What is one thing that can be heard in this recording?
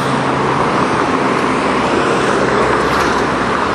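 A bus engine rumbles as it drives past.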